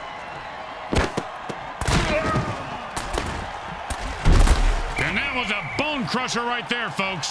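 Armoured players collide with heavy thuds.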